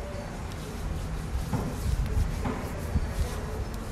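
Cutters snip through a plastic strap with a sharp click.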